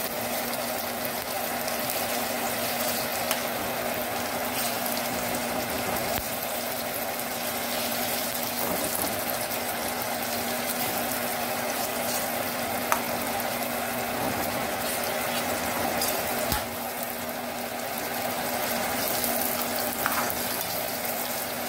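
Meat sizzles and fries in a hot pan.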